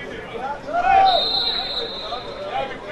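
A referee's whistle blows once.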